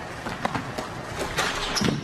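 A basketball rim rattles as a player dunks.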